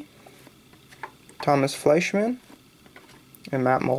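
Trading cards slide and rustle softly in a hand.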